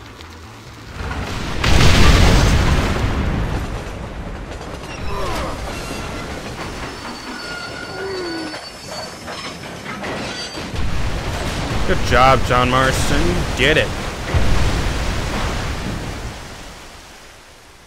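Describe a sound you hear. A steam train rumbles and chugs along the tracks.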